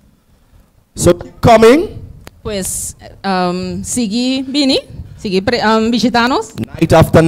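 A young woman speaks through a microphone and loudspeakers.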